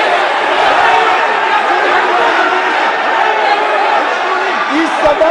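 Many men shout and clamour over one another in a large echoing hall.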